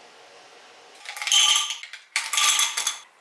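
Ice cubes clatter into a glass.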